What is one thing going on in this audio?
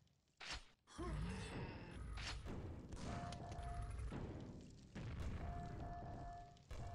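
A nail gun fires rapid metallic shots.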